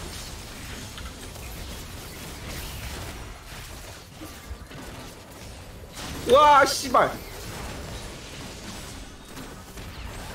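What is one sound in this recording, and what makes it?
Spell effects and weapon hits clash and whoosh in a fast battle.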